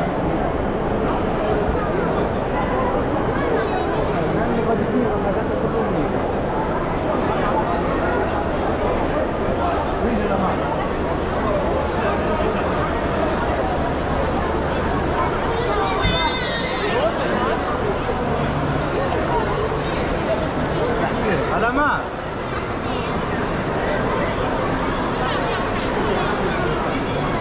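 A crowd of people chatters and murmurs all around in a large echoing hall.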